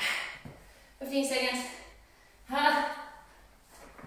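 A woman speaks with effort between movements.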